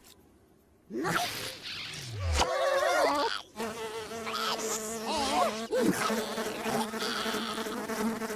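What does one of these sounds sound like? A cartoon creature shrieks loudly.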